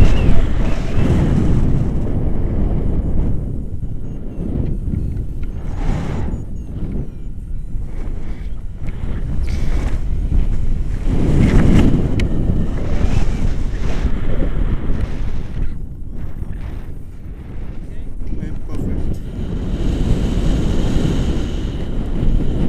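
Wind rushes loudly over a microphone in flight.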